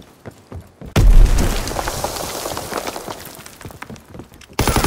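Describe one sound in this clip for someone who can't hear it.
A shell explodes with a loud boom that rumbles away.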